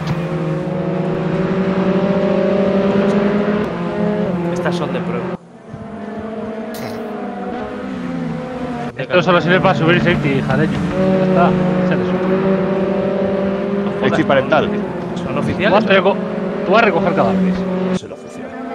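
Racing car engines drone steadily at high revs.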